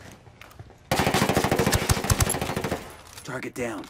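A rifle fires a rapid burst of gunshots close by.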